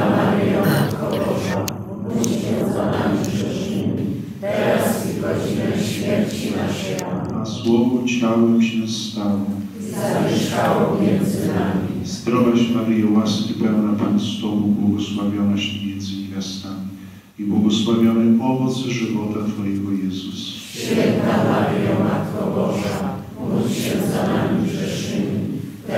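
A group of men recite a prayer aloud together in a large echoing hall.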